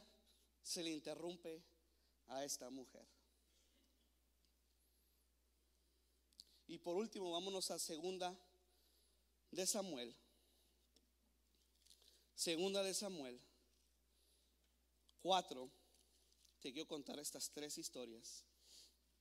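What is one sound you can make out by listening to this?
A young man speaks calmly into a microphone in short bursts with pauses.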